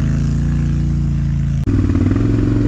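A quad bike engine idles steadily.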